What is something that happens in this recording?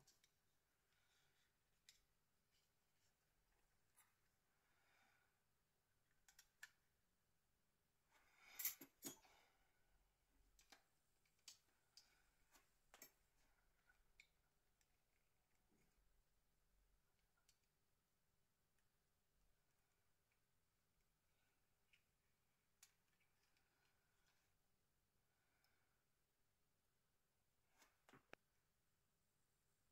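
Small plastic and metal phone parts click and tap as hands take them apart.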